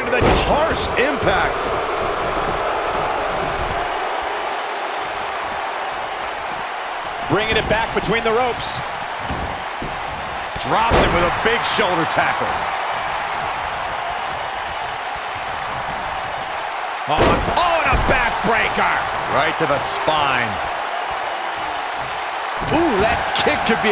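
Bodies slam heavily onto a wrestling mat with loud thuds.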